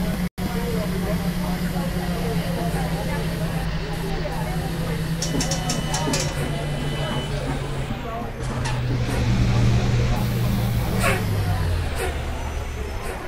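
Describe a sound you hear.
A bus engine hums steadily, with its pitch shifting as the bus drives on.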